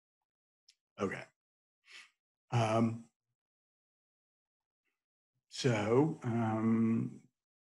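An older man speaks calmly into a microphone, heard over an online call, in short phrases with pauses.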